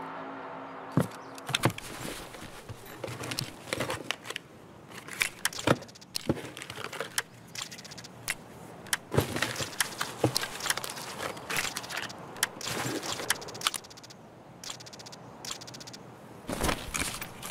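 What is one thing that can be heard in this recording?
Gear rustles and clicks as items are moved around a backpack.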